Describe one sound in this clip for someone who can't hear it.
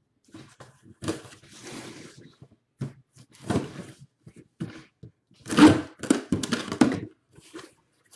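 Cardboard packaging rustles and scrapes.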